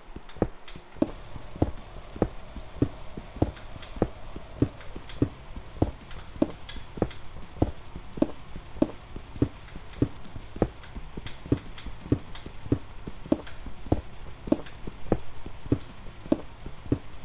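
A pickaxe chips at stone in quick, steady knocks.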